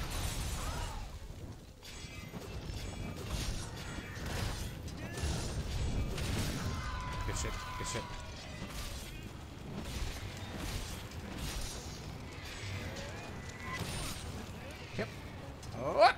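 Blades slash and clang against a creature's hide in quick bursts.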